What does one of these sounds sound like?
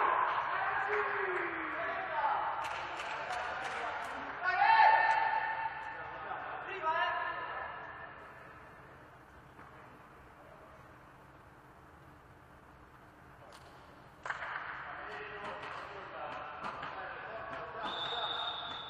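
Men call out to each other in a large echoing hall.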